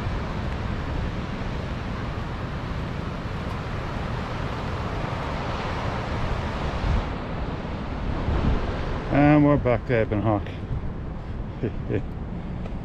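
Wind blows in gusts, rumbling across the microphone outdoors.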